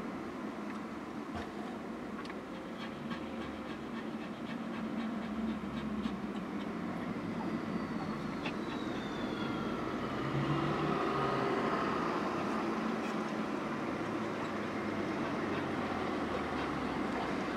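Cars drive past outside.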